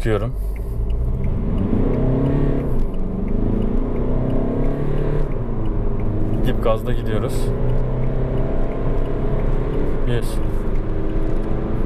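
A car engine revs hard as the car accelerates.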